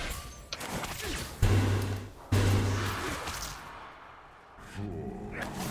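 Spell blasts and clashing weapons burst out in a fast game fight.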